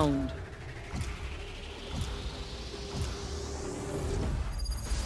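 A game's countdown ticks once every second.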